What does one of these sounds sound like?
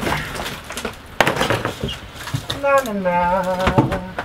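Wood panelling creaks and tears as it is pried loose.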